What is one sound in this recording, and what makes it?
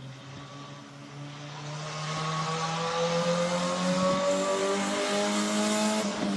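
Race car engines drone in the distance and slowly grow louder.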